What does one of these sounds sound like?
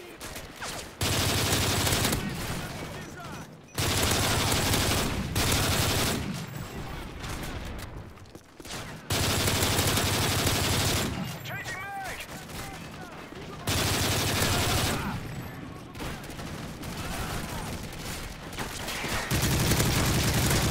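Automatic gunfire rattles in loud, rapid bursts.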